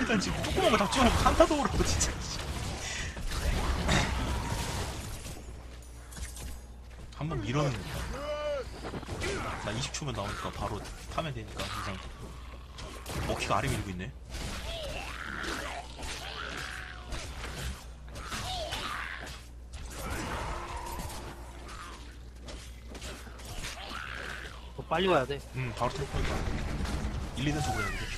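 Magic blasts and clashing weapons crackle in a busy battle.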